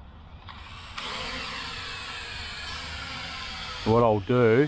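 A small drone's propellers buzz and whine overhead.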